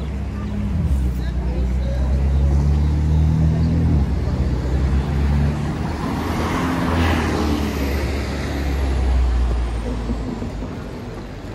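A bus rumbles past close by, its engine loud and low.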